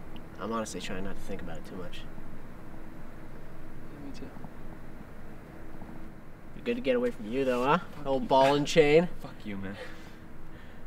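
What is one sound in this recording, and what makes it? A young man talks quietly and calmly close by.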